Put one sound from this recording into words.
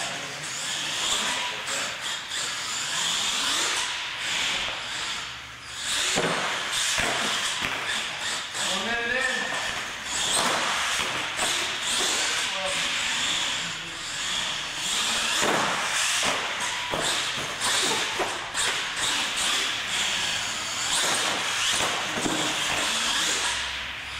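Small tyres skid and scrub on a smooth hard floor.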